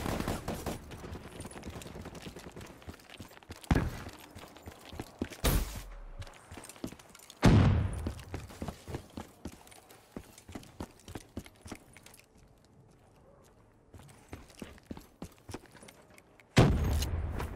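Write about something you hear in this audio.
Footsteps crunch and tap at a running pace.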